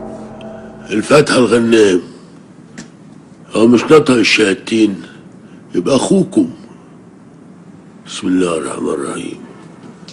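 An elderly man speaks urgently in a low, tense voice.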